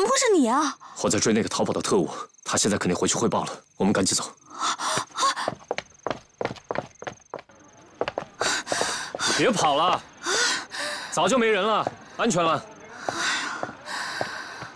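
A young man speaks urgently, close by.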